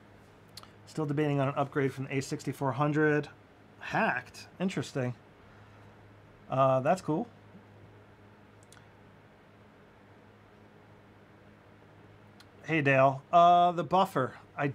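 A man speaks calmly and close to a microphone, pausing between phrases.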